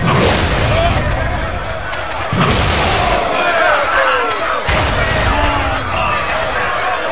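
A crowd cheers and shouts loudly around a fight.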